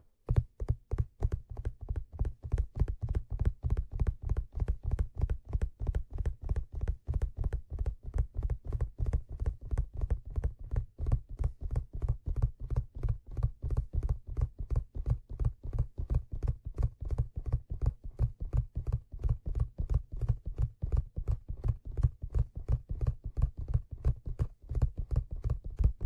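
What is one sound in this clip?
Fingertips tap rapidly and steadily on a leather surface close to a microphone.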